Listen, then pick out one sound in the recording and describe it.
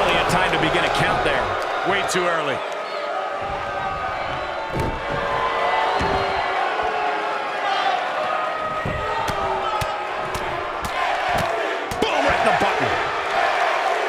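Bodies thud heavily onto a ring mat.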